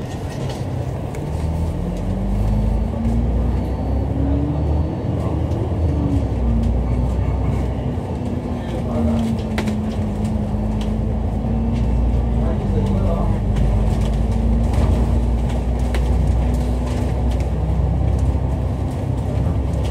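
Traffic rumbles along the street.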